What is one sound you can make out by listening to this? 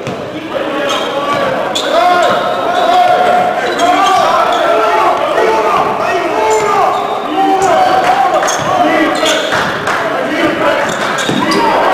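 Sneakers squeak sharply on a wooden court in a large echoing hall.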